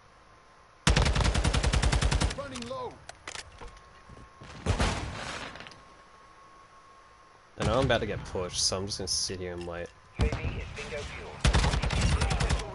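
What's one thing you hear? An automatic rifle fires rapid, loud bursts.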